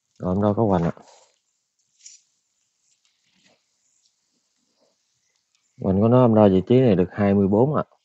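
A man speaks calmly and close by, with pauses.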